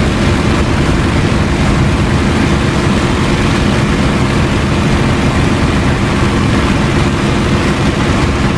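A propeller aircraft engine roars steadily up close.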